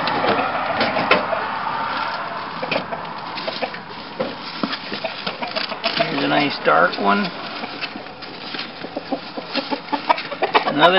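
Dry hay and fur rustle and crackle close by.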